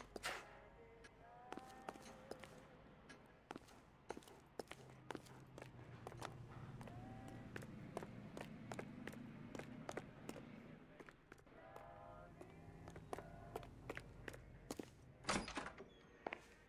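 Hard-soled shoes tap quickly on concrete as a man walks and then runs.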